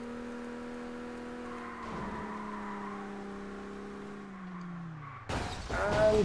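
A racing car engine hums steadily, then slowly drops in pitch.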